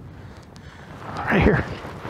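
A flag flaps in the wind.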